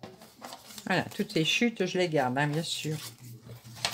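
A paper trimmer blade slides through paper.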